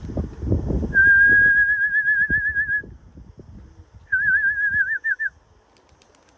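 A bird calls with a high, trilling whistle.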